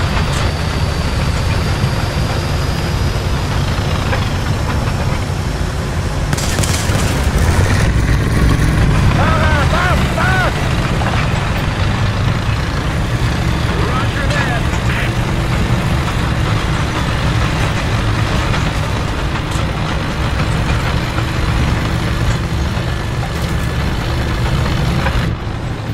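Tank tracks clatter and grind over the ground.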